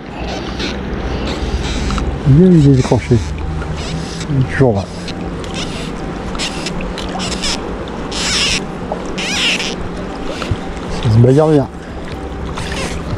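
A river flows gently nearby.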